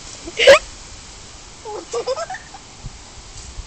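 A young boy calls out excitedly close by.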